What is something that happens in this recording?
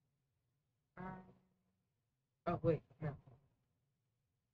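A young man speaks briefly into a microphone, in short bursts.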